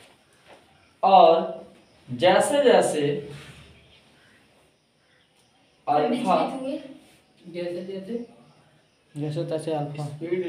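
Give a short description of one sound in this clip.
A young man speaks calmly and clearly, close by, in short phrases with pauses.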